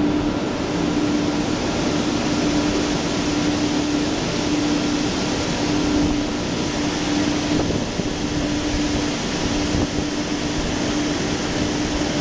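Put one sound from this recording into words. Grain pours out of a trailer with a steady rushing hiss.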